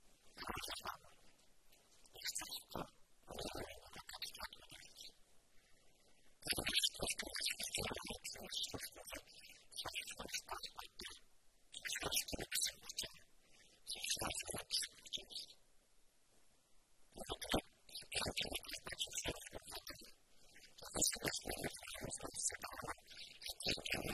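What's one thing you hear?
A man speaks steadily into a close microphone, with pauses.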